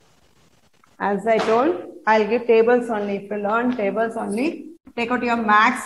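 A woman speaks clearly and with animation, close to a microphone.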